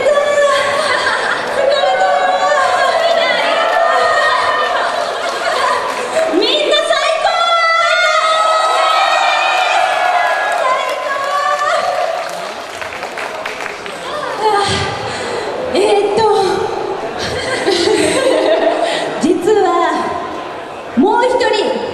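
Band music plays loudly through speakers.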